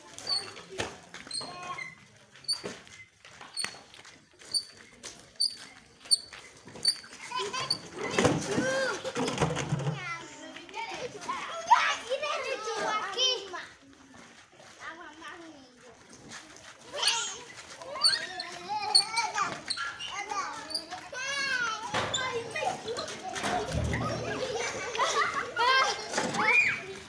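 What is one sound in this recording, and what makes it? A wheelbarrow wheel rattles over dirt ground.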